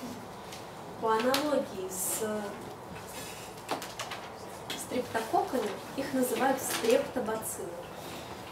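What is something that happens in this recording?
A woman speaks calmly in a room with a slight echo.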